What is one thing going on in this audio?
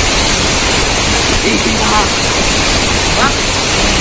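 Water splashes as boys wade and scoop in a stream.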